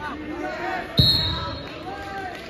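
A whistle blows sharply once.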